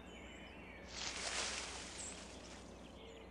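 Leaves rustle as a deer bounds into dense undergrowth.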